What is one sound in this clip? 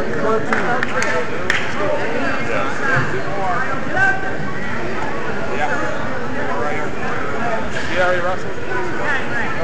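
Sneakers squeak on a gym mat.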